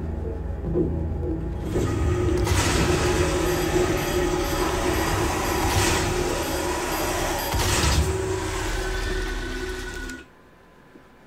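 Gunshots and explosions boom loudly in a fast action game.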